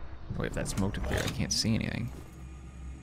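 A young man talks through a microphone.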